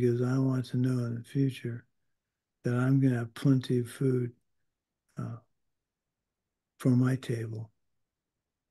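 An older man speaks calmly into a microphone over an online call, in short bursts.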